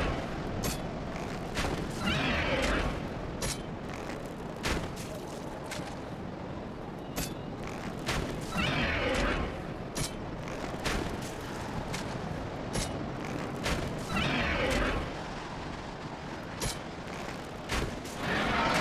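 Metal armour clanks in quick, sharp hits.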